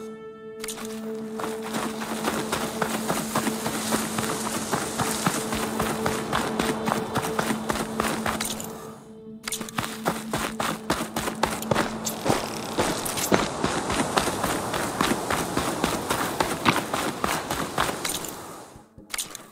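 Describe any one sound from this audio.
Footsteps rustle quickly through dense undergrowth.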